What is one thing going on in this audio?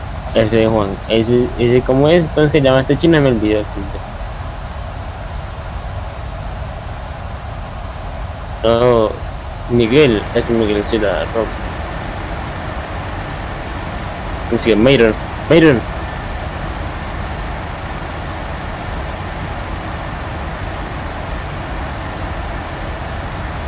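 Jet engines hum steadily inside an aircraft cockpit.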